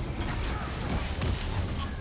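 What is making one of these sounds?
Laser beams fire with a sharp buzzing hiss.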